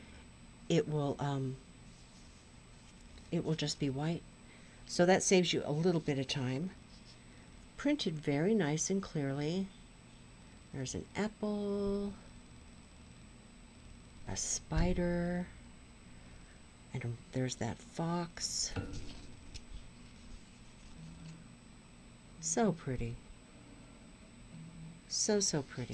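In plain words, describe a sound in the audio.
Stiff canvas rustles softly as hands handle it.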